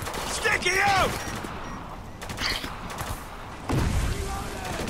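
A grenade explodes with a deep boom.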